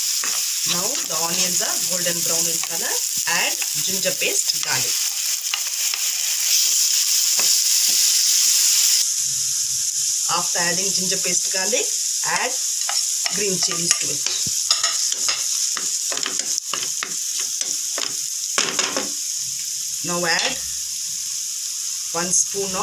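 Chopped onions sizzle in hot oil in a pan.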